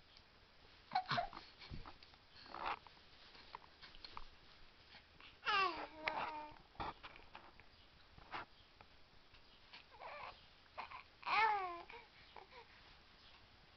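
A baby coos and squeals close by.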